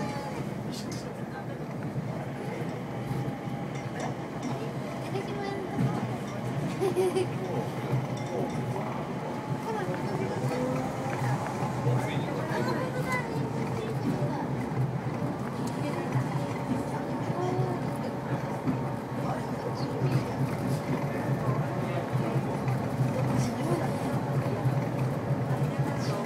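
A train hums and rumbles steadily along its track.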